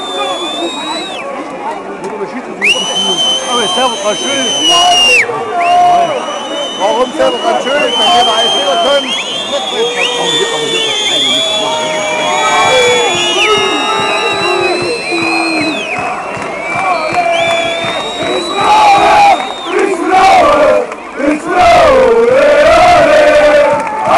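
A large stadium crowd chants and shouts outdoors.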